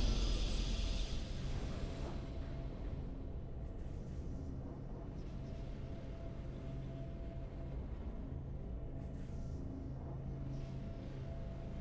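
Triumphant fanfare music plays softly.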